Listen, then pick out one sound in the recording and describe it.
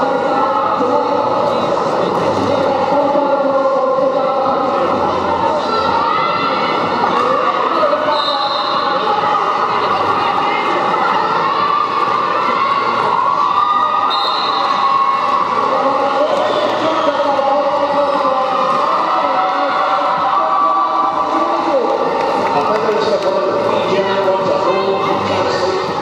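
A crowd chatters and cheers loudly in a large echoing hall.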